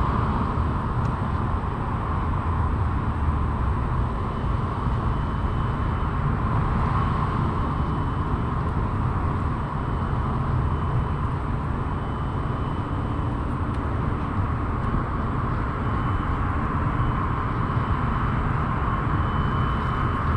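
Wind buffets a microphone outdoors, rumbling steadily.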